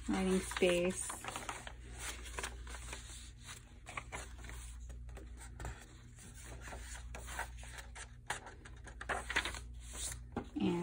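Paper pages rustle and flap as they are turned by hand.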